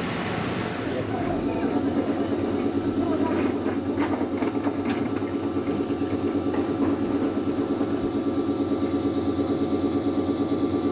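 A train's wheels rumble steadily on the rails.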